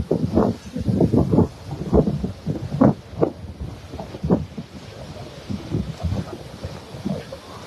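Young men chatter nearby in a crowd outdoors.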